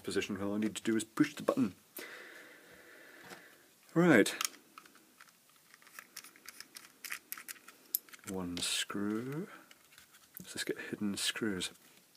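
A plastic case clicks and rattles in the hands.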